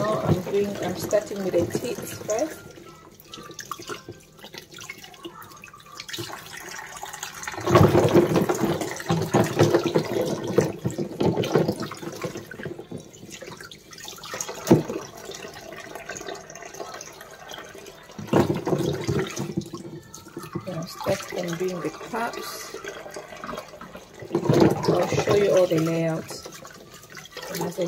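Plastic items clatter and splash in water as hands wash them.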